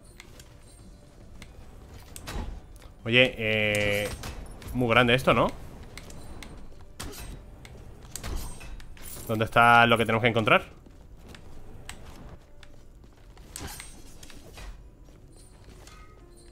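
Video game sound effects play as a character fights.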